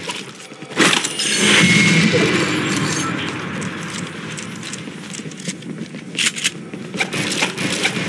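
Wooden walls and ramps knock and clatter into place in quick bursts.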